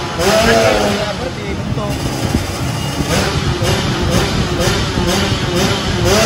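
A wrench clicks against a motorcycle wheel hub.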